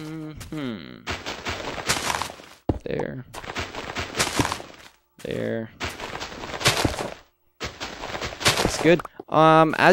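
Dirt and gravel crunch as blocks are dug out in repeated bursts.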